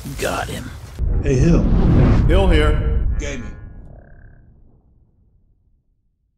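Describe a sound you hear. A logo sting whooshes and rings out.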